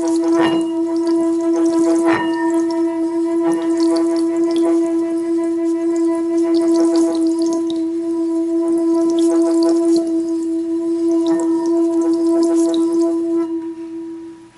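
Water spatters and crackles inside a ringing metal bowl.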